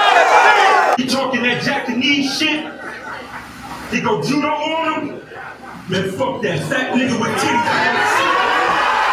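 A man raps forcefully nearby, in short bursts with pauses.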